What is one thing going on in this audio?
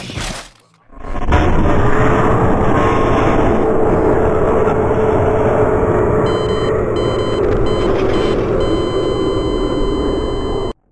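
A harsh, distorted animatronic screech blares.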